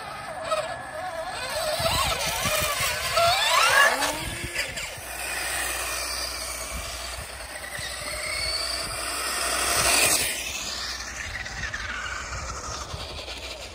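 A small electric motor whines, rising and falling in pitch.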